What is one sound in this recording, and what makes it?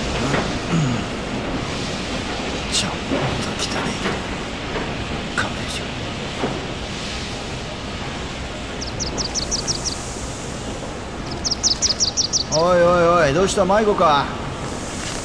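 A man speaks quietly, then calls out.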